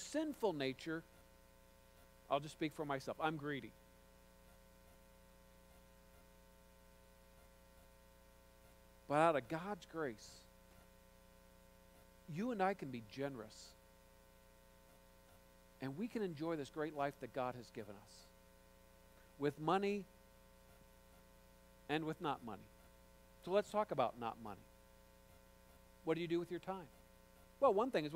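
A man speaks calmly through a microphone in a large echoing hall, with long pauses.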